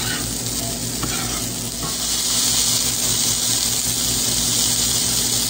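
A metal spatula scrapes against a frying pan.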